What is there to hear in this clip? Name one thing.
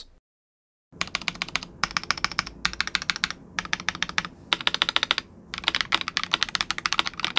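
Keys on a keyboard clack rapidly as someone types.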